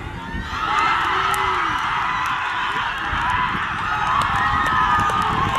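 A group of young men and women cheer and shout excitedly outdoors.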